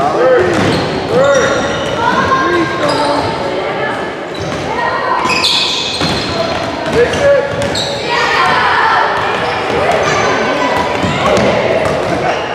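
Basketball sneakers squeak on a hardwood court in a large echoing gym.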